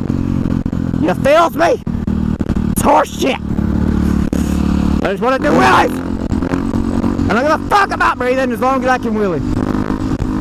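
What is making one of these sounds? A motorcycle engine revs up and down sharply several times.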